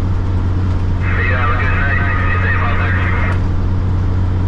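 A truck's air horn blasts loudly.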